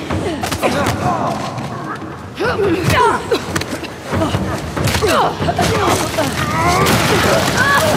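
Fists strike in a scuffle with dull thuds.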